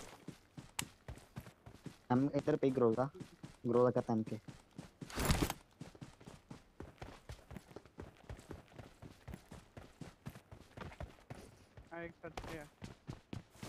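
Quick footsteps run over ground.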